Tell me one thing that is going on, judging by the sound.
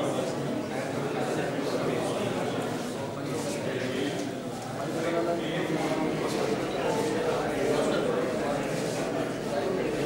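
A crowd of men murmurs in an indoor hall.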